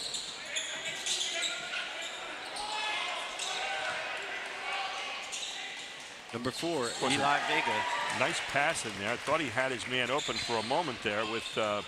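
A crowd murmurs in a large echoing gym.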